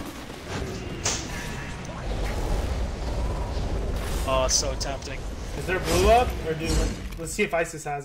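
Game sound effects of magic blasts and clashes play.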